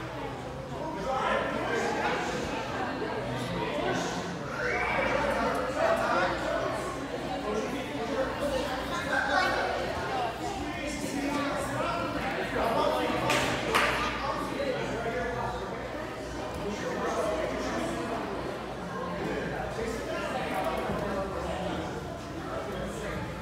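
Children chatter and call out in a large echoing hall.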